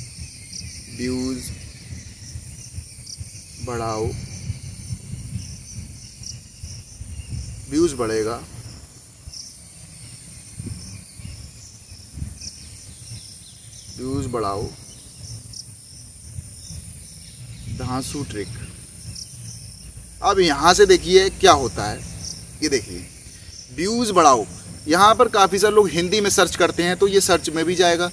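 A young man speaks into a close microphone, in short bursts at first and then with animation.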